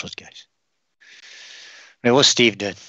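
A spray can hisses briefly.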